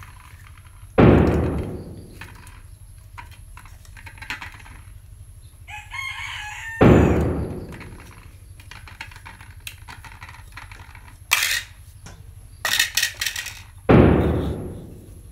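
A wooden game piece clacks down onto a board with a dull thud.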